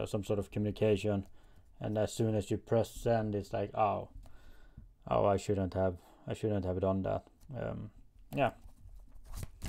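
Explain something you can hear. A man speaks calmly and softly close to a microphone.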